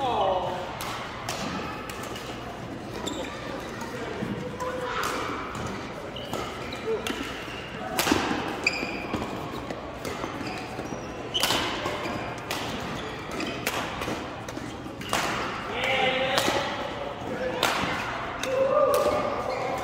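Shuttlecocks are struck sharply with rackets, echoing in a large hall.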